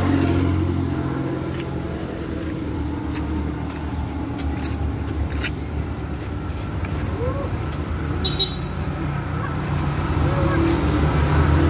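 Flip-flops slap on a concrete road.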